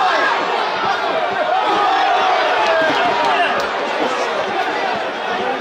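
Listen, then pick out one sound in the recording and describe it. Men shout to each other across an open pitch.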